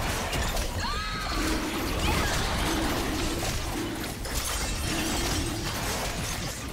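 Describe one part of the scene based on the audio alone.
Game fighting effects clash and crackle in a steady busy stream.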